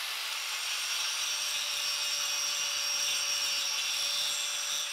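An angle grinder grinds against metal with a harsh screech.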